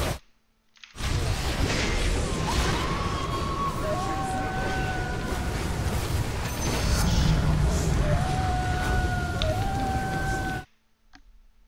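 Fantasy battle effects burst and clash loudly.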